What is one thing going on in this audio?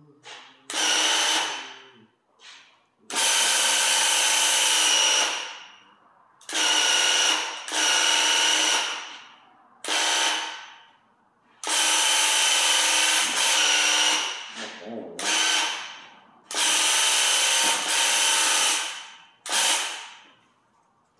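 A paint sprayer hisses and whirs in short bursts.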